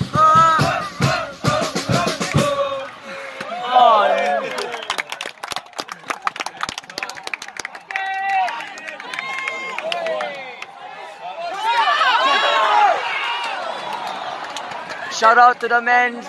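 A crowd of fans chants and sings loudly nearby.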